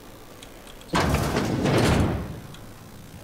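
A metal door slides open with a whoosh.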